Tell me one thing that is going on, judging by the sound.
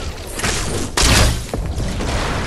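A bow twangs as an arrow is loosed.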